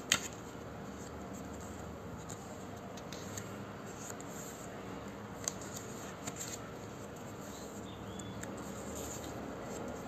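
Paper pages rustle and flip as a notebook is leafed through.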